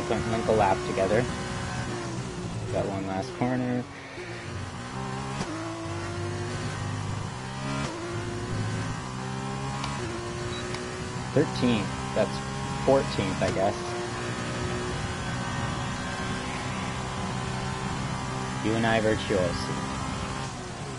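A racing car engine whines loudly at high revs, rising and dropping as gears change.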